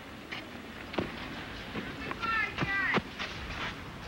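A tennis ball bounces sharply on a clay court.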